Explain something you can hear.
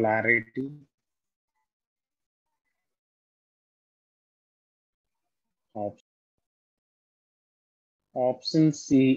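A young man speaks calmly into a microphone, in short bursts with pauses.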